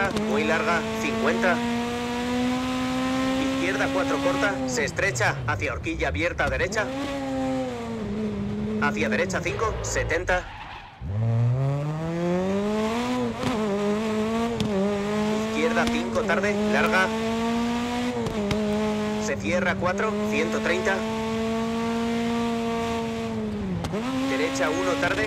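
A rally car engine roars loudly, revving up and dropping with each gear change.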